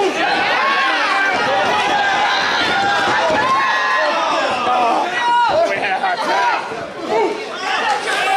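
A crowd cheers and shouts loudly in an echoing hall.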